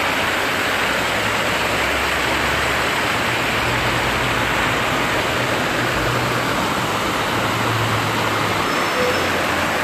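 A truck engine rumbles low nearby.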